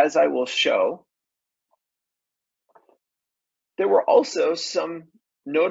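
A man speaks calmly and steadily through a microphone, as in an online talk.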